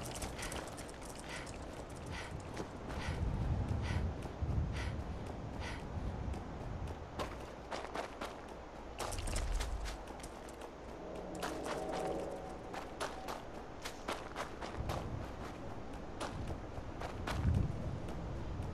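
Footsteps crunch quickly over rubble and gravel.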